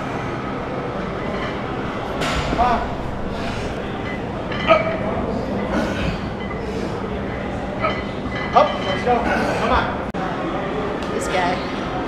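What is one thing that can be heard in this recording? Weight plates clank on a barbell.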